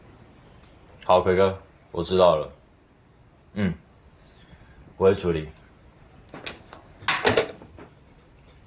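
A young man speaks calmly into a telephone close by.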